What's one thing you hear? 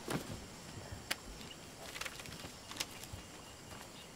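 Paper bills rustle as a hand flips through a stack.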